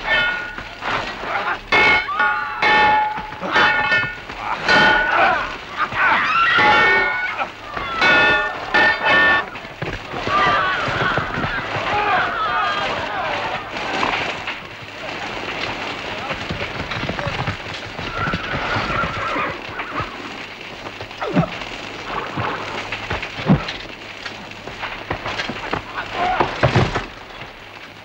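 Men shout and yell in battle.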